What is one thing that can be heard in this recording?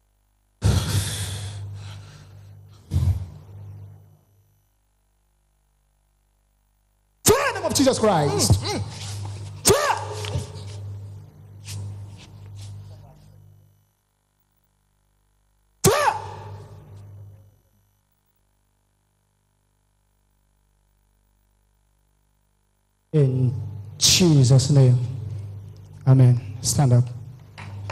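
A man speaks forcefully into a microphone, heard in an echoing hall.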